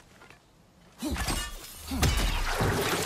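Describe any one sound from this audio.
A magical beam of light bursts with a loud rushing whoosh.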